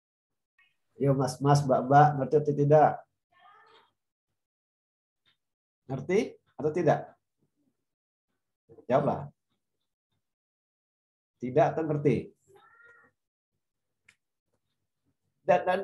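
A man speaks calmly in short phrases through an online call.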